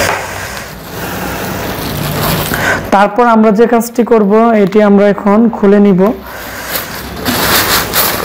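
Plastic bubble wrap crinkles as it is handled.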